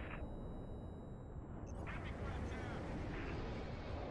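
Laser cannons fire in rapid zapping bursts.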